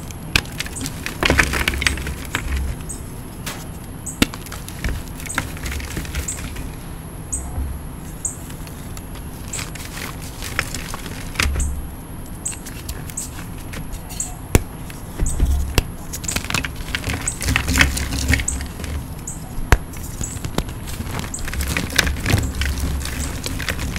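Hands crumble and rub soft powdery chalk, with soft crunching and rustling up close.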